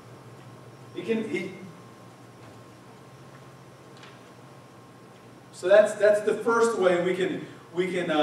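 A middle-aged man speaks calmly through a microphone in a room, with pauses between phrases.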